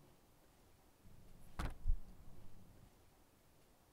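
A sheet of paper rustles and is laid down on a wooden table with a soft tap.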